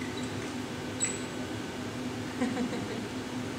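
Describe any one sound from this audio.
A metal panel clanks as workers move it into place.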